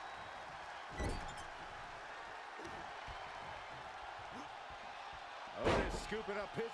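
Heavy thuds of bodies hitting a wrestling ring.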